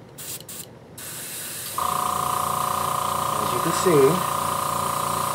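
An airbrush hisses steadily as it sprays paint.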